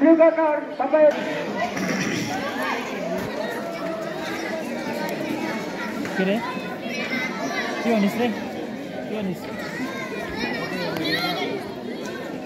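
A crowd of children and adults chatters outdoors.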